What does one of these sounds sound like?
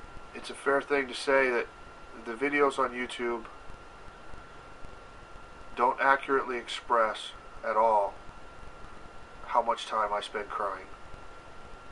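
A middle-aged man speaks slowly and calmly, close to the microphone, with long pauses.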